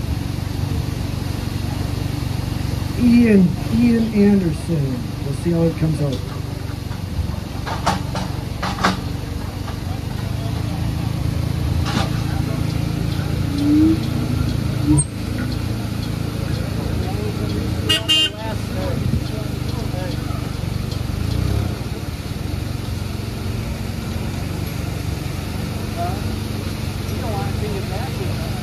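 A forklift engine idles steadily nearby.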